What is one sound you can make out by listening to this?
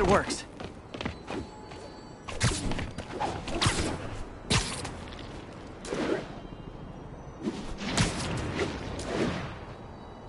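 Web lines shoot out with sharp snapping thwips.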